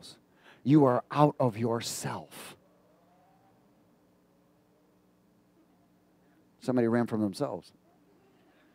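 A middle-aged man speaks with animation through a headset microphone.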